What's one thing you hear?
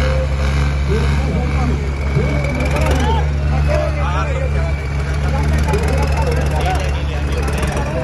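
A tractor engine revs as it drives close by.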